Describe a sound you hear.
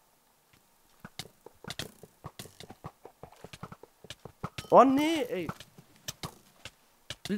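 A bow twangs as arrows are shot in quick succession.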